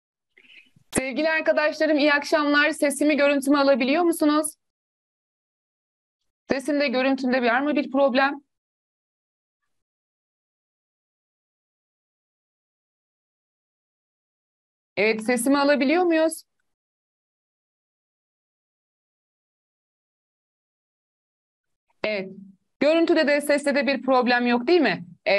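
A young woman speaks calmly into a microphone, in bursts with long pauses.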